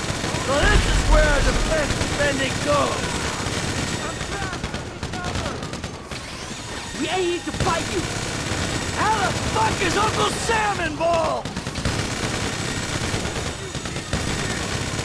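A rapid-fire heavy machine gun roars in long bursts.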